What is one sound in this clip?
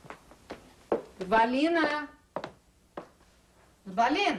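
A woman exclaims loudly, close by.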